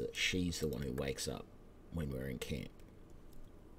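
A middle-aged man speaks calmly and close into a microphone.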